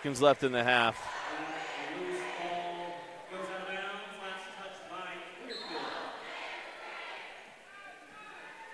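Spectators talk and call out in a large echoing gym.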